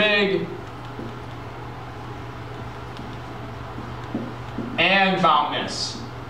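A man speaks calmly nearby, reading out words.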